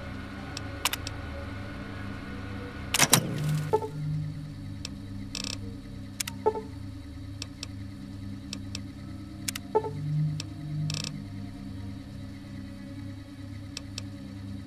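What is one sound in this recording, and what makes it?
Short electronic clicks and beeps sound now and then.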